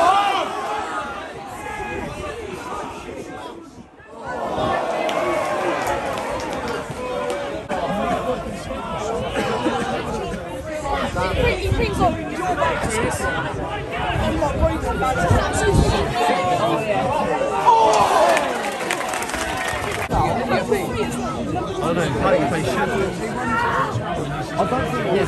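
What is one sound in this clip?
A large crowd of fans sings and shouts outdoors.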